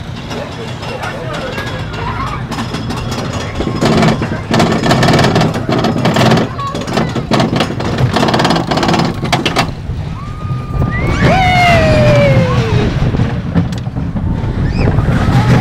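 A small roller coaster rattles along its track.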